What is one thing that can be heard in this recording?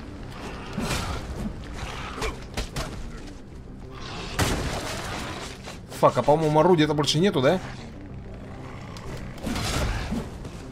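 Heavy blades slash and thud into bodies in quick blows.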